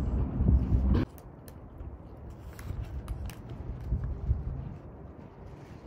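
A paper food wrapper crinkles and rustles close by.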